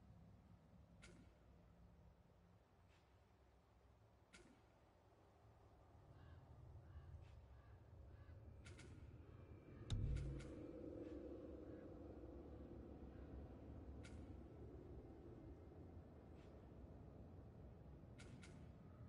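Short interface clicks tick now and then.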